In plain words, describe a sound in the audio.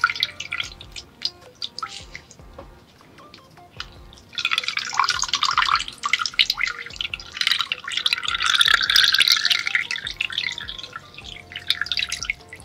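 Water trickles and drips into a bowl close to a microphone.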